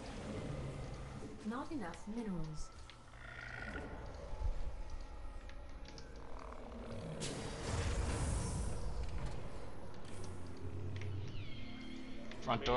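Game sound effects chirp, beep and whoosh.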